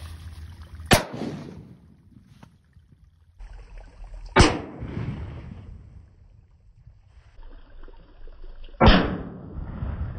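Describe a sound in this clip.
A small charge goes off with sharp, loud bangs, several times.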